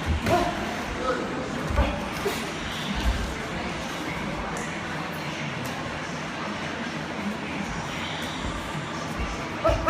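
Padded gloves thud against gloves and headgear in quick bursts.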